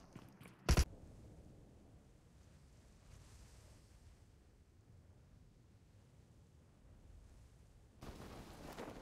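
Wind rushes steadily during a parachute descent.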